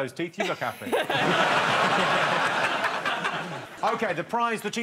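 A studio audience laughs loudly.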